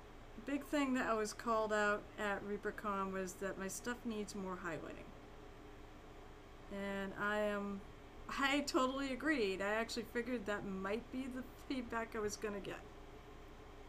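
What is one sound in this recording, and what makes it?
A woman talks casually into a nearby microphone.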